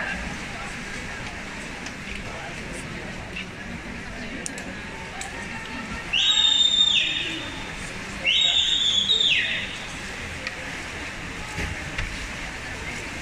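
A crowd of spectators chatters in an echoing indoor hall.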